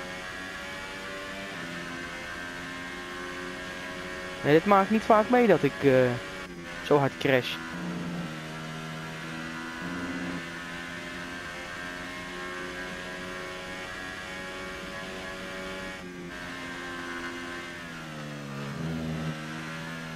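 A Formula One car's engine screams at high revs.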